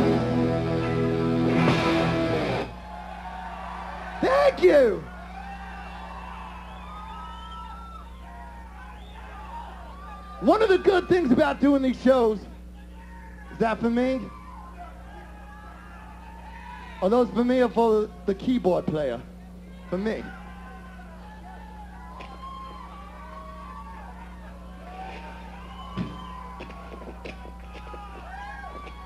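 A crowd cheers, whistles and shouts in a large hall.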